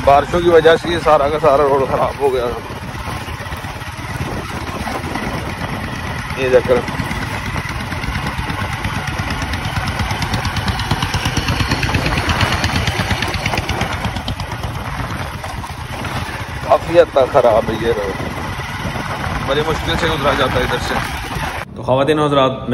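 A motorcycle engine rumbles steadily as the bike rides over a bumpy dirt track.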